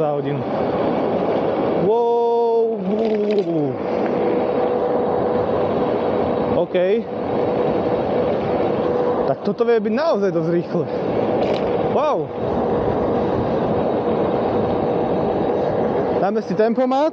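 Wind rushes loudly past while riding fast outdoors.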